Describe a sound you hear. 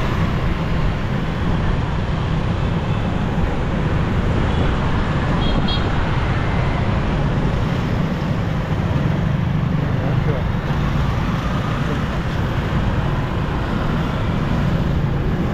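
Motorbike engines hum steadily all around.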